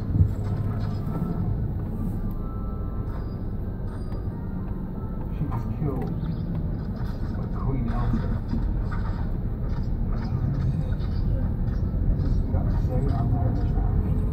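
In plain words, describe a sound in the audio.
A car engine hums steadily from inside the car as it rolls slowly.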